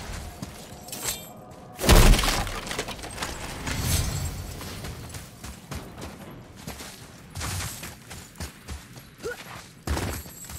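Heavy footsteps thud on stone.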